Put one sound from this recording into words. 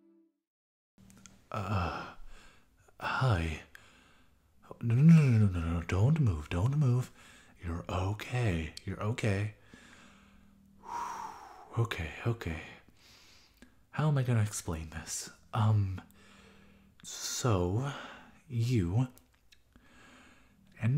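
A young man speaks softly and close to a microphone.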